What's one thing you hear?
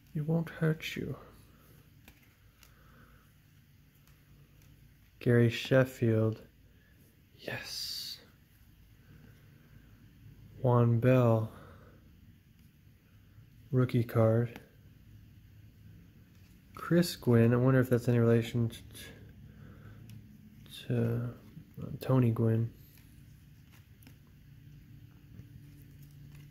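Stiff cards slide and rustle against each other in hands.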